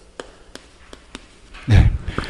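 Chalk taps on a board.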